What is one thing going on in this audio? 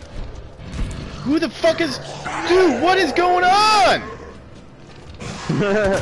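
A young man shouts and yelps with excitement into a close microphone.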